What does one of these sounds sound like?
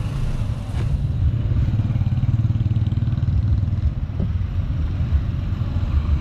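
Motorcycles drive past on a nearby road.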